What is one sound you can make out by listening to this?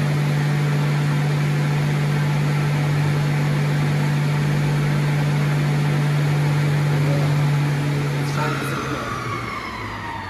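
A woodworking machine hums loudly and steadily, then winds down with a falling whine.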